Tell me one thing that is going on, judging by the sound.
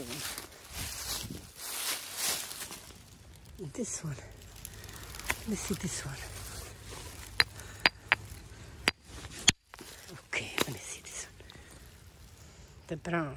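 Footsteps crunch on loose stones and dry leaves.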